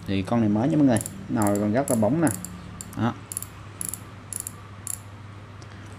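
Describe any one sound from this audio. A fishing reel's mechanism clicks rapidly as its handle is turned.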